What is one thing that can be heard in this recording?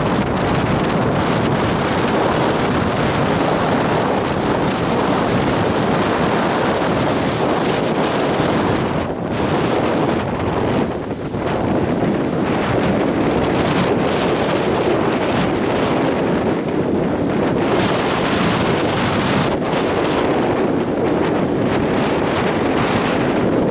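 Wind blows hard across the microphone.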